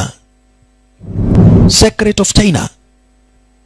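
An older man speaks slowly and sternly.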